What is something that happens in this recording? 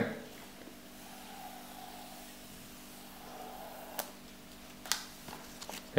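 Hard plastic parts click and tap as they are handled and fitted together.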